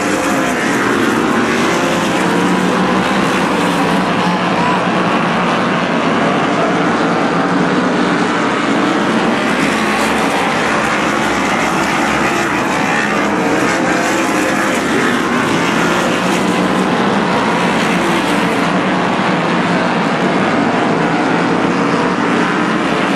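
A large crowd cheers steadily in the stands.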